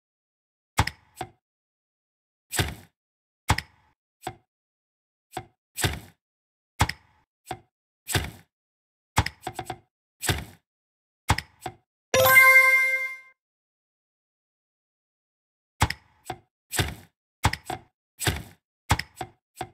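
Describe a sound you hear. Short clicks and pops sound as building pieces snap into place.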